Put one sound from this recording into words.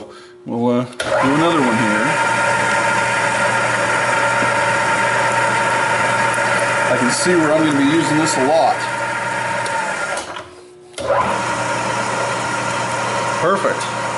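A drill bit grinds into metal.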